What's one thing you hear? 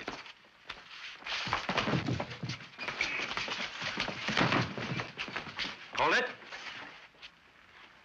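Men scuffle and grunt in a brawl.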